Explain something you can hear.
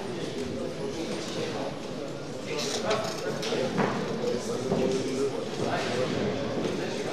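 A crowd murmurs and chatters in an echoing hall.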